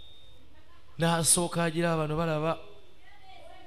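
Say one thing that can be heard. A middle-aged man speaks tensely, close by.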